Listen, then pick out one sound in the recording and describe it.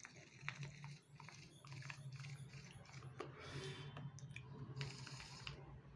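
A young man exhales with a soft breathy hiss.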